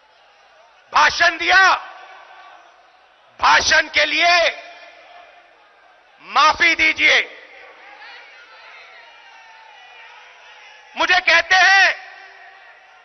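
A man speaks forcefully into a microphone, heard through loudspeakers with an echo.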